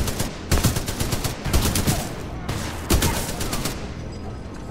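An automatic rifle fires in rapid, booming bursts.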